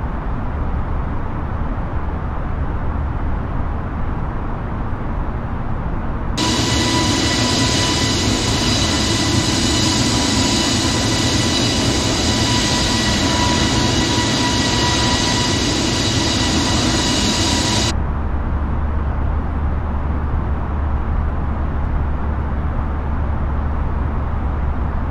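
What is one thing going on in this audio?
A jet airliner's engines drone low and steady, muffled as if heard from inside the cockpit.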